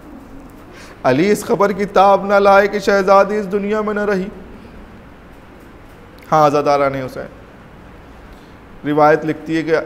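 A man chants melodically in a steady voice, close to a microphone, in sustained phrases with pauses.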